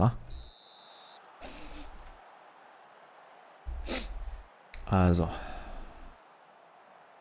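A young man talks into a close microphone in short bursts.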